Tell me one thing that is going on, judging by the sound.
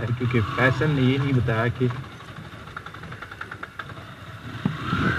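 Tyres crunch over loose stones.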